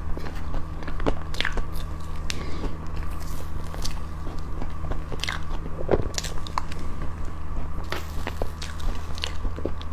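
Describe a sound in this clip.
A fork scrapes against a plate of cream cake.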